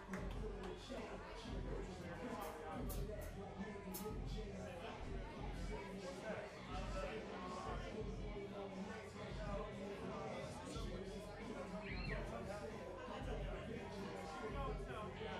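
Drums and cymbals pound in a steady beat.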